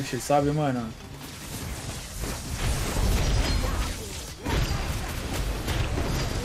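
Game battle effects and spell blasts play in bursts.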